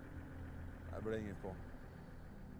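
A man speaks a few calm words.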